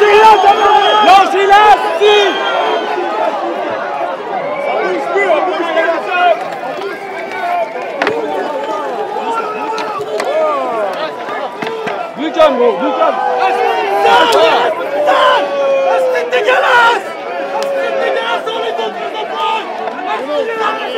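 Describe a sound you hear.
A crowd of men and women shouts and chants loudly outdoors, close by.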